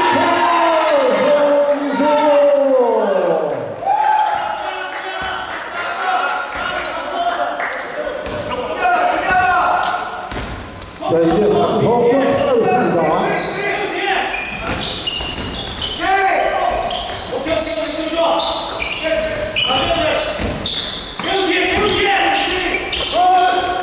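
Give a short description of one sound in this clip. Young men shout to each other during a game.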